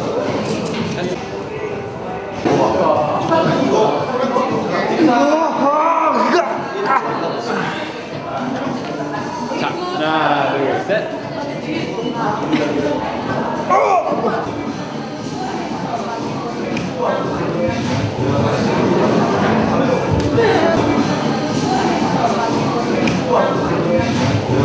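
Young men talk and laugh playfully nearby.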